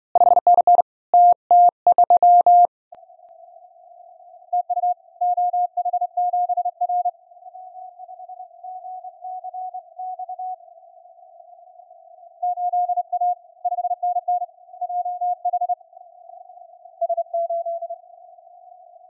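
Morse code tones beep from a radio receiver.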